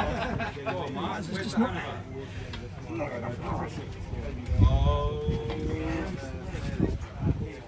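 An arm-wrestling table creaks and thumps under strain.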